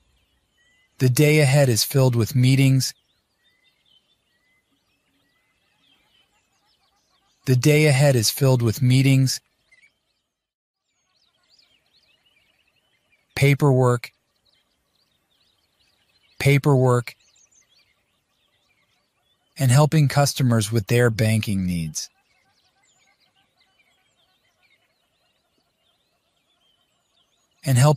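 A man speaks clearly and calmly in short phrases with pauses.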